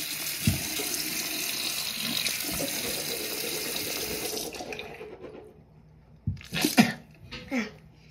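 A young girl spits into a sink.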